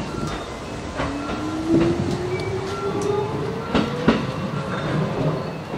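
An electric train's motor whines and rises in pitch as it pulls away.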